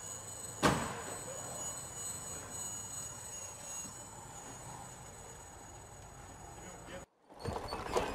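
A small drone whines steadily overhead.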